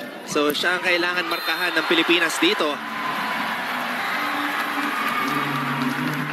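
A large crowd cheers and chatters in a big echoing arena.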